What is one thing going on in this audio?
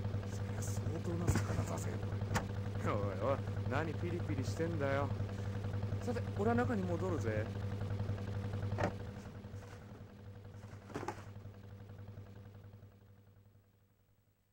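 A boat engine hums steadily, then fades away.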